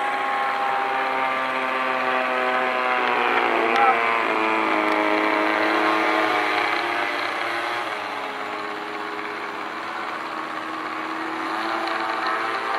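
A model plane's engine drones steadily nearby, its pitch shifting as it taxis.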